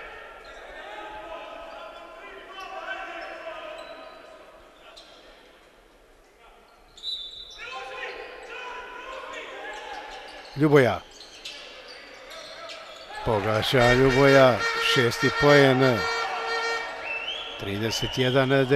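Basketball shoes squeak on a wooden court.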